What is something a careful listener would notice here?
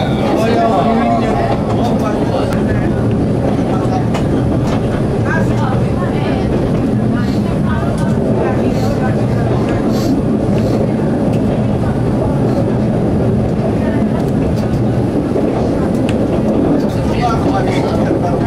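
Train wheels clack and squeal on the track.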